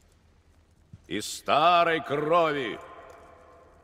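A man shouts loudly, echoing through a large hall.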